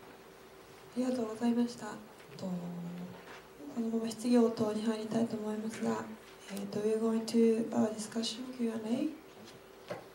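A woman speaks into a microphone through loudspeakers.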